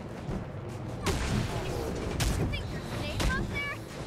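A gun fires loud, sharp shots that echo.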